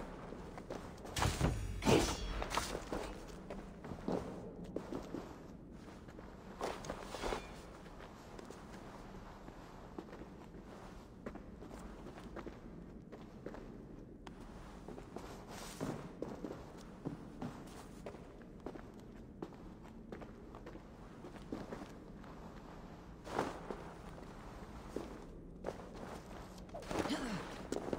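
Footsteps crunch slowly over rocky ground.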